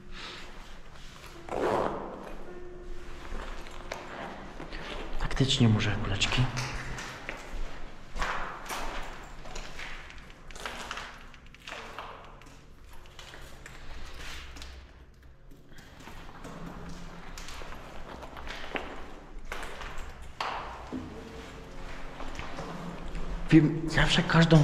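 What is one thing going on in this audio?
Footsteps crunch on debris.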